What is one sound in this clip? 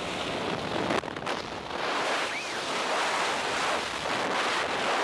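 Strong wind roars loudly and steadily.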